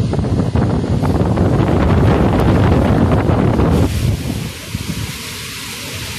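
A strong storm wind roars and gusts outdoors.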